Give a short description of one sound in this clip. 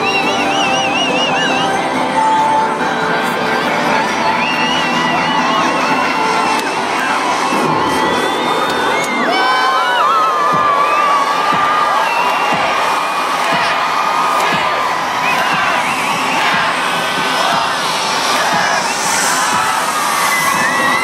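A large crowd cheers and chatters in the open air.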